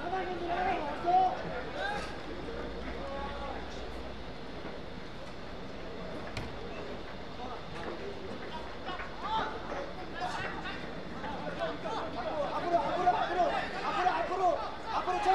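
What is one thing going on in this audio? Teenage boys shout to each other across an open outdoor pitch.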